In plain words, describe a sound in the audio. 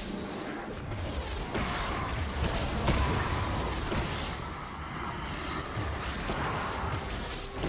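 Game weapons strike with sharp impacts.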